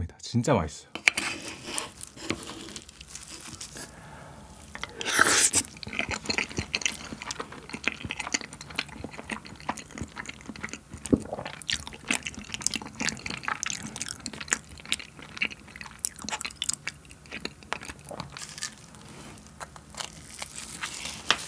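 A spoon scrapes and clinks against a plate.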